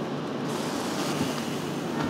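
A blade scrapes against a car roof, throwing sparks.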